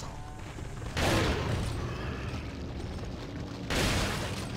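A shotgun fires loud blasts that boom and echo.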